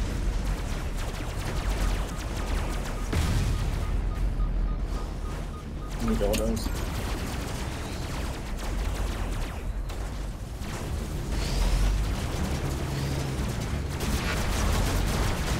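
Energy weapons fire in rapid zapping bursts.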